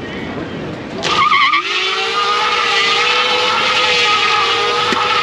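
A bike's rear tyre spins and screeches on asphalt in a burnout.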